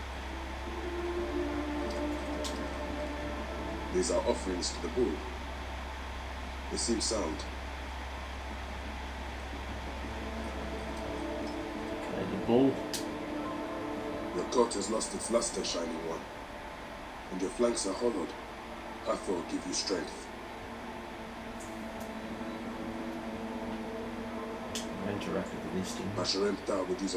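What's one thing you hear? A young man speaks calmly into a nearby microphone.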